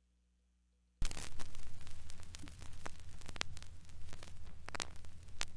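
Surface noise crackles and pops from a vinyl record as it plays.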